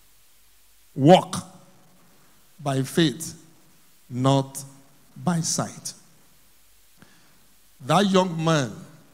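A man preaches emphatically into a microphone in short bursts with pauses.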